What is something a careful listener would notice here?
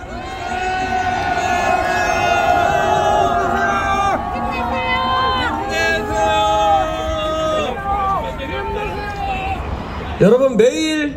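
A large crowd chants together loudly outdoors.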